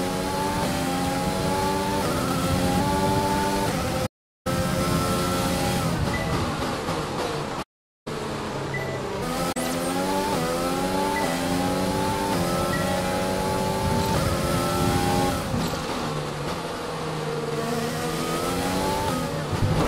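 A racing car engine screams at high revs, rising in pitch and dropping with each gear change.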